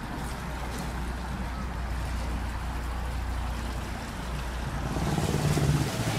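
Water splashes and churns in a boat's wake.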